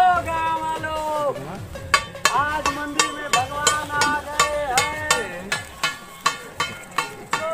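A man beats a metal plate with a stick in a steady rhythm.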